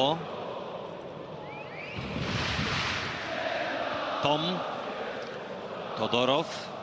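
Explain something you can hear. A large stadium crowd roars and murmurs outdoors.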